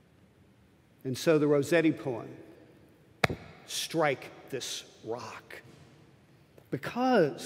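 An elderly man speaks with feeling through a microphone in a large echoing hall.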